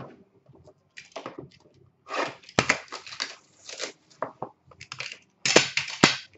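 Hands slide and tap small cardboard boxes.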